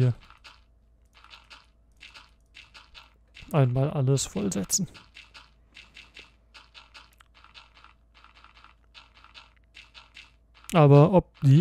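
Game blocks thud softly as they are placed, one after another.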